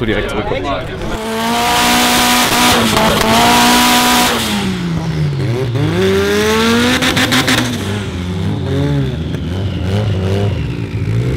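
A car engine revs loudly, rising and falling in pitch.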